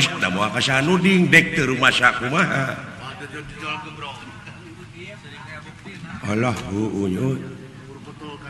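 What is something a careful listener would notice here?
A man speaks in animated, changing character voices through a microphone.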